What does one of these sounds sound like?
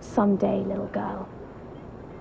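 A young woman speaks calmly up close.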